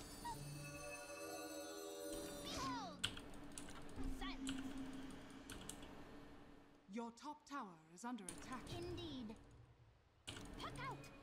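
Magical game effects chime and whoosh.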